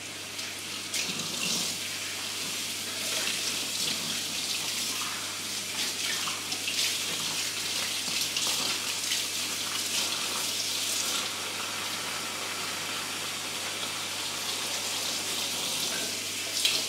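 Glass jars clink together as they are washed.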